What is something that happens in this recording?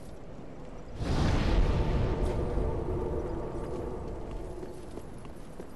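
A rushing gust of swirling dust bursts and slowly fades.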